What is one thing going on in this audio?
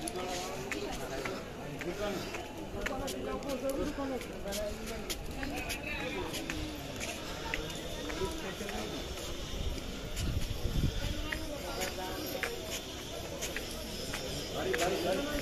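Bare feet patter and slap on stone steps.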